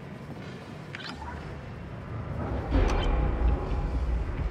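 A computer terminal beeps and whirs as it switches on.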